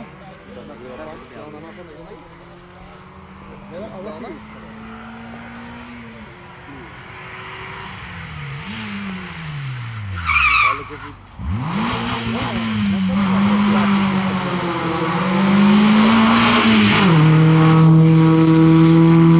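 A rally car engine revs hard, rising and falling in pitch and growing louder.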